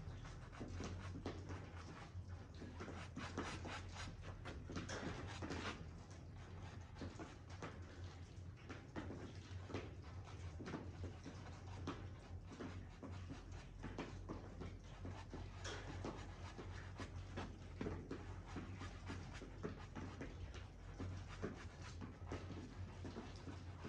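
A brush scrapes and dabs on a canvas.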